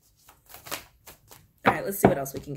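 A card rustles in a woman's hands.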